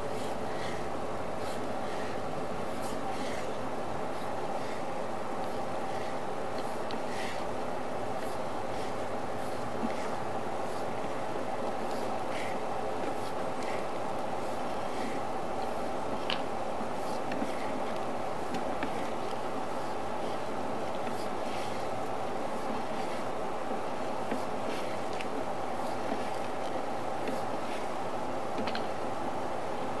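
A small motor hums steadily.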